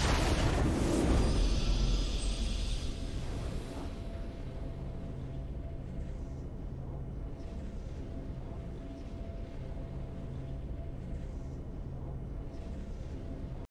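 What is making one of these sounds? A triumphant musical fanfare plays softly.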